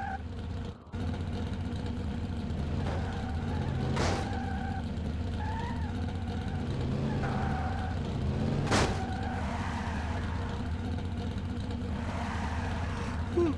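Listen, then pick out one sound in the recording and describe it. A car engine revs and idles steadily.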